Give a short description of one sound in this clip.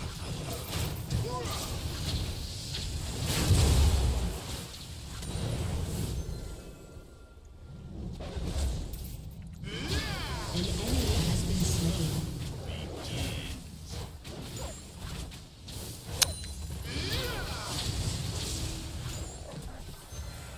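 Spell effects blast and crackle during a fight.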